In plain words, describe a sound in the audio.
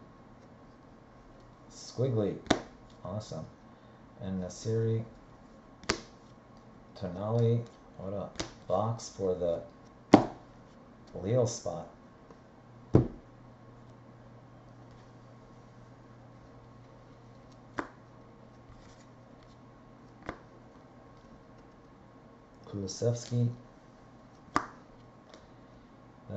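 Trading cards rustle and click as hands flip through them.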